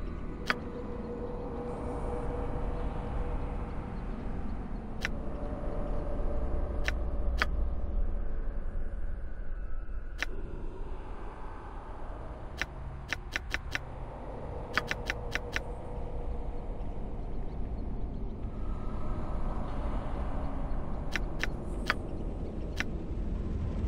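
Short sharp interface clicks sound as menu items are picked.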